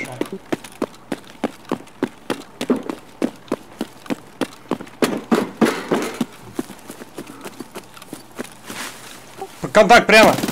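Footsteps thud quickly and evenly on the ground.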